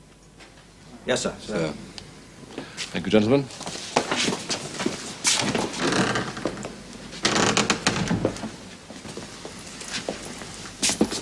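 Several men talk and murmur in a room.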